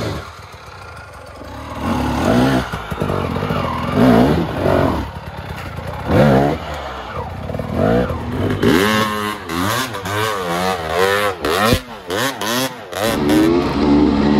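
A dirt bike engine revs hard and sputters as it climbs a rough slope.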